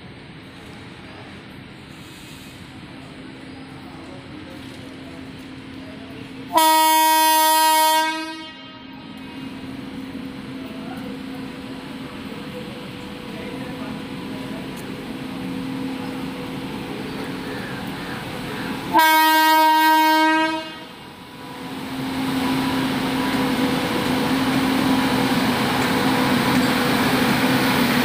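A locomotive engine rumbles as it approaches.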